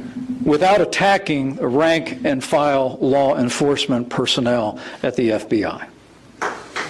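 An older man speaks forcefully into a microphone in a large hall.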